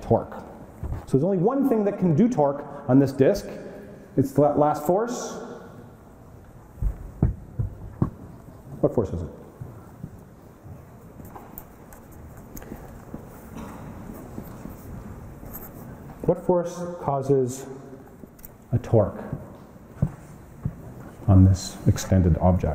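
A man lectures in a large echoing hall, heard through a microphone.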